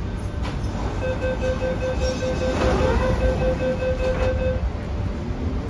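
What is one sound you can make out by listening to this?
A door warning signal beeps rapidly.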